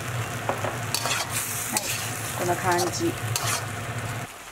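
A metal spatula scrapes and clatters against a wok.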